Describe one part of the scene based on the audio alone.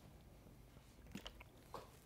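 A man drinks from a plastic water bottle.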